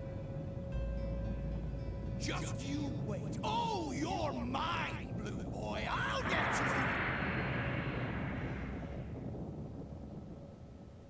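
A large airship's engines drone as it flies overhead and fades away.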